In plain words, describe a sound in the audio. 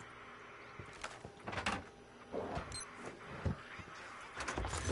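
Equipment rattles and clicks as it is searched.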